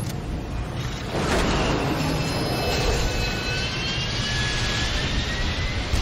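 An aircraft's engines roar steadily.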